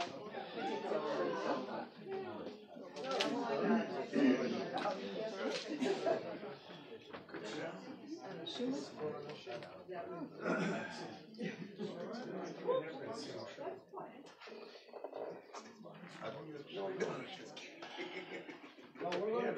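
A crowd of adults chatters and talks indoors, in a room with a slight echo.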